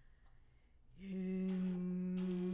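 A piano plays chords.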